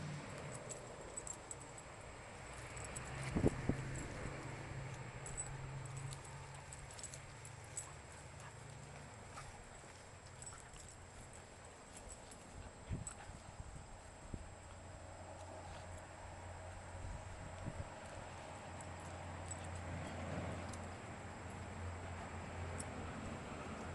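Puppies growl softly as they wrestle.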